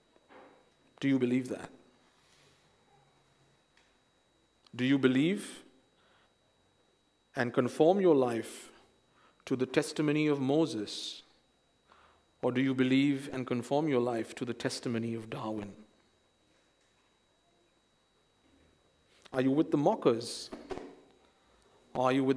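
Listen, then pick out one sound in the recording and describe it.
A young man speaks calmly into a microphone, in phrases with pauses.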